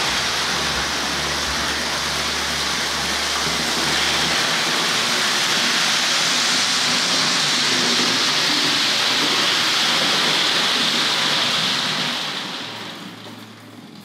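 A model train rattles along its tracks with a steady whirring hum.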